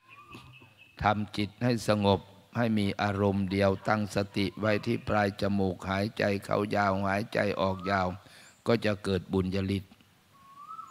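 A man speaks calmly through a loudspeaker system.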